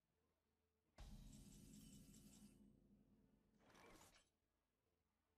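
A bright game chime rings out with a swelling fanfare.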